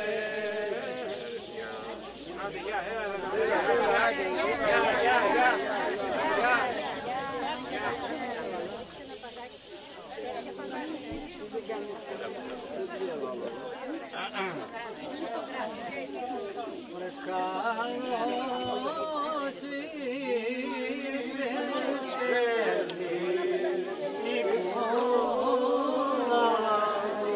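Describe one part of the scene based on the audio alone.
Men and women chatter and laugh nearby.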